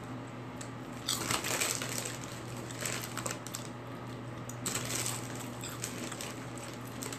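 A man crunches on a snack.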